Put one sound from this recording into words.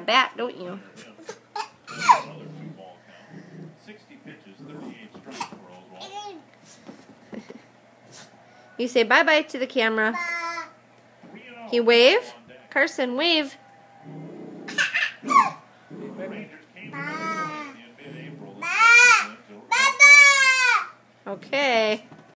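A toddler squeals and babbles excitedly close by.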